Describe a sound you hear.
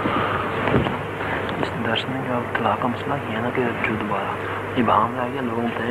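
A man speaks quietly close by, off the microphone.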